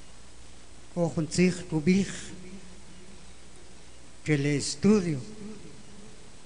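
An elderly man speaks slowly into a microphone, heard through a loudspeaker, with pauses between phrases.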